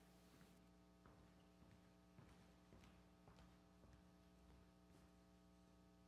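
Footsteps tap across a wooden stage in a large echoing hall.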